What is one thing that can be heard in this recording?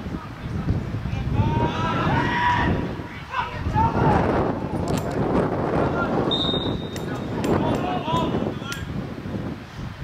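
Young men shout to each other across an open field in the distance.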